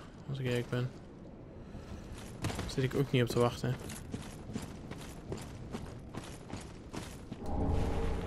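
Armoured footsteps crunch steadily over leaf-strewn ground.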